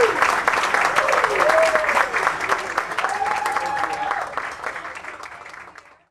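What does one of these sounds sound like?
A live band plays guitars in a room and slowly fades out.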